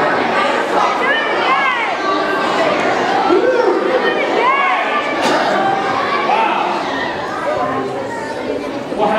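Squeaky high-pitched puppet voices chatter playfully.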